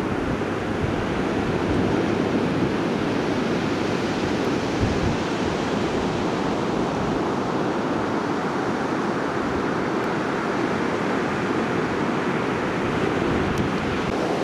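Waves crash and roar steadily on the shore.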